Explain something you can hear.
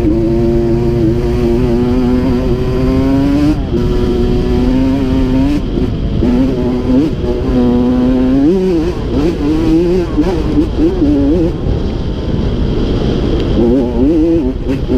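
A dirt bike engine revs and whines up and down in pitch close by.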